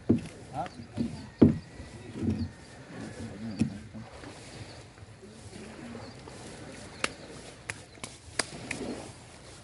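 A man wades through shallow water, splashing softly.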